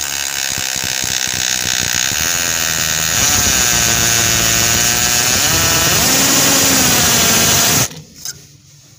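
A cordless drill whirs loudly as it drives a screw into metal, then stops.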